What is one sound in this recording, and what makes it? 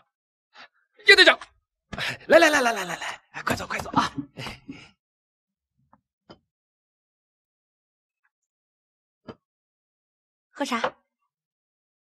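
A man laughs loudly with animation.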